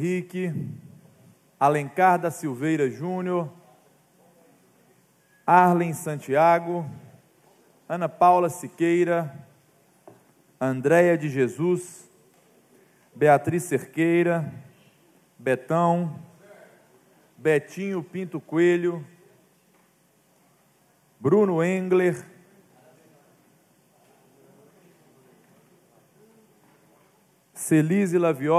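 A man speaks calmly through a microphone in short phrases, with pauses between them.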